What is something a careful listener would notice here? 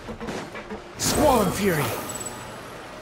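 A magical burst whooshes and shimmers.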